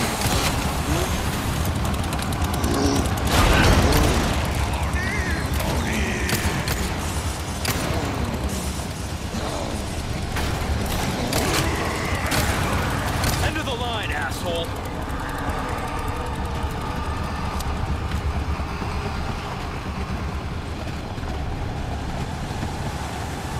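A mine cart rumbles and clatters along metal rails.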